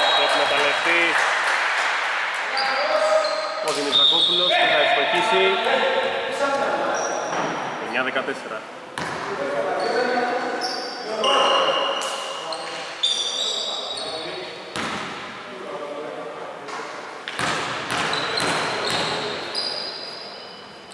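Sneakers squeak sharply on a hard court in an echoing hall.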